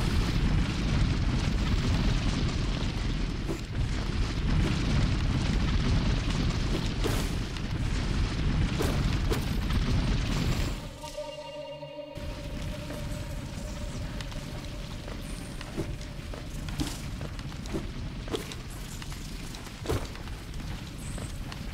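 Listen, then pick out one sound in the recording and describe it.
Game sound effects thump and swish in short bursts.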